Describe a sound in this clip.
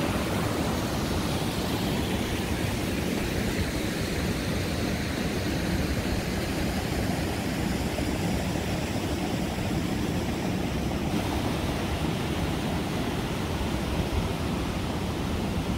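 Rushing water roars steadily over rapids.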